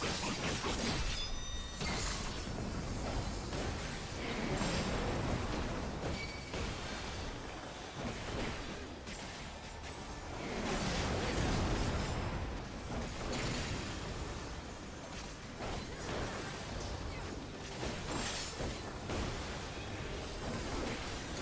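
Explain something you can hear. Magic spell blasts burst and crackle.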